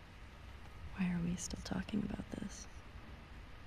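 A second young woman answers calmly.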